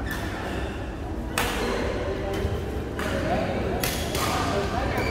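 A shuttlecock is struck with a racket.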